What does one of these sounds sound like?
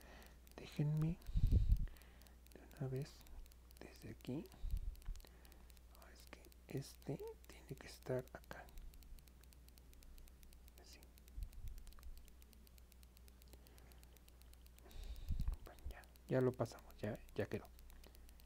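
A crochet hook softly rubs and clicks against yarn.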